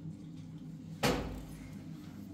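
A kettle clinks as it is set down on a stove.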